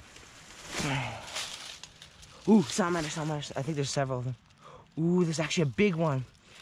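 Dry leaves rustle and crackle as hands move through them.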